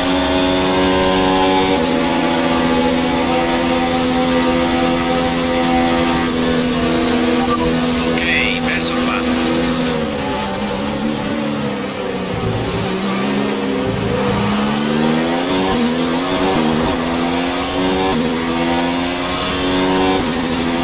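A racing car engine screams at high revs, shifting gears, dropping in pitch when braking for a corner and then rising again as it speeds up.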